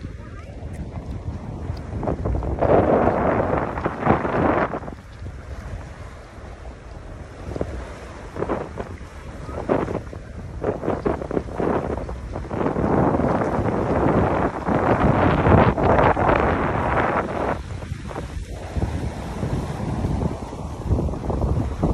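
Wind gusts blow loudly across the microphone outdoors.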